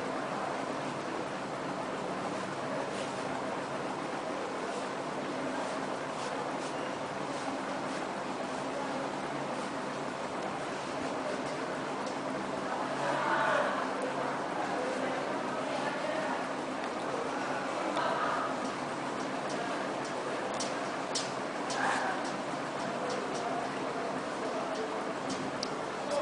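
Fabric rustles softly as a tie is knotted.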